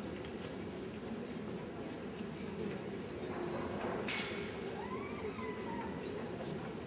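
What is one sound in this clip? A large crowd of men and women chatters and murmurs in a large echoing hall.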